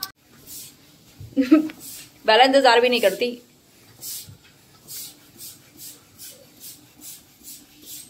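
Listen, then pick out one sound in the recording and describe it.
A hand pump squeaks as it inflates a balloon.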